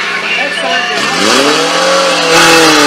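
A pump engine starts and revs up loudly.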